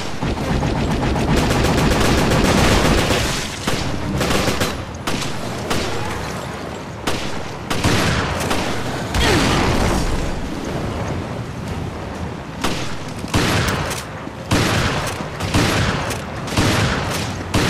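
Gunshots crack in quick bursts, echoing.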